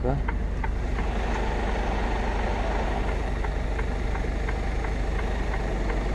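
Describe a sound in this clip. Wind rushes loudly through an open truck window.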